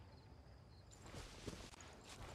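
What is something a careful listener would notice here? Footsteps rustle softly through grass.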